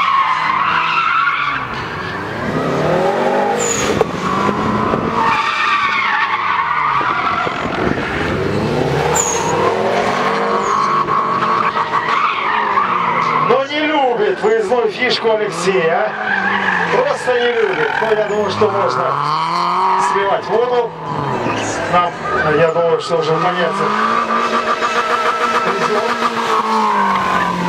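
Tyres squeal on tarmac during sharp turns.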